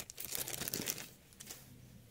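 A plastic cover rustles and clicks as it is handled.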